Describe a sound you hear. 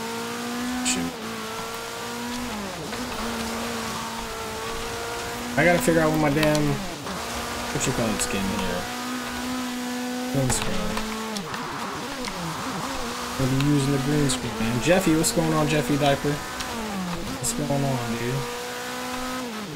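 A car engine revs and shifts gears.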